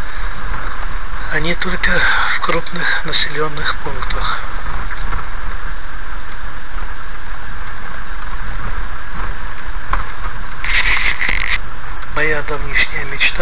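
Rain patters on a car windshield.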